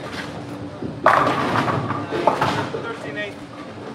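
Bowling pins crash and clatter in a large echoing hall.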